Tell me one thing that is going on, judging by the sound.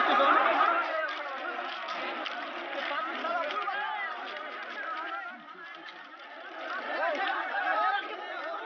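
A crowd of men shouts and talks loudly outdoors.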